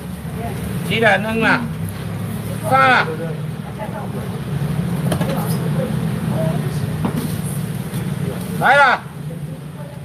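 A man calls out loudly nearby in short bursts.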